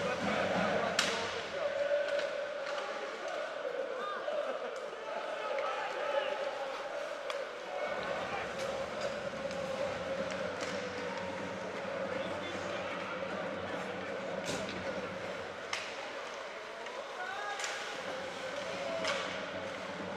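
Hockey sticks clack against a puck.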